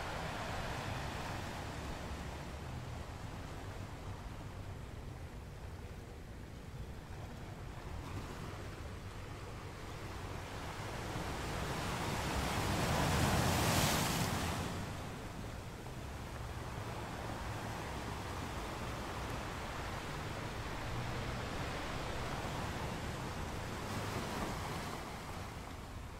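Surf washes and hisses over a rocky shore.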